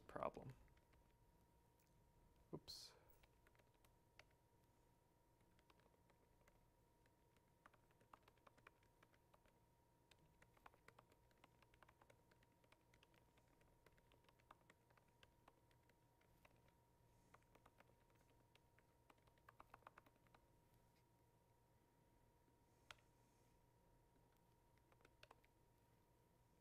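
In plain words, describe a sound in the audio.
Fingers tap softly on a laptop keyboard.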